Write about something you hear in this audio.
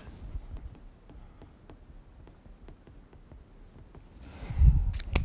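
A marker squeaks and taps on a whiteboard in short strokes.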